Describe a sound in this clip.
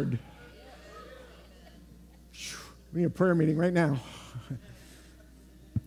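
A middle-aged man speaks through a microphone in a large room, pausing between words.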